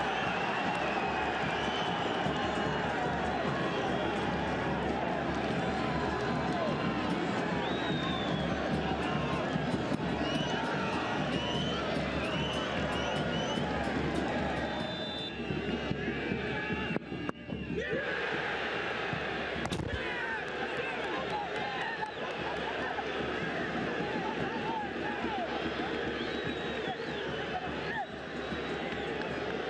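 A large crowd chants, whistles and cheers loudly outdoors.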